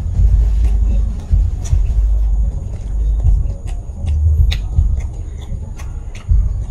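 Crisp food crunches between a man's teeth.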